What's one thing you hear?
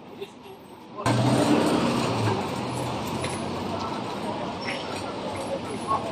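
Busy street noise with passing traffic fills the air outdoors.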